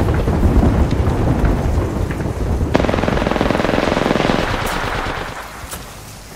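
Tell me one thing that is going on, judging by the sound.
An electric fence buzzes and crackles close by.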